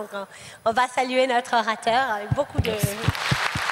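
A man speaks into a microphone in a large echoing hall.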